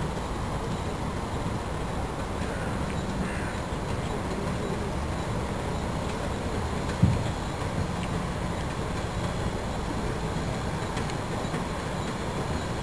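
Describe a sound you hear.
Steam hisses from a boat's funnel.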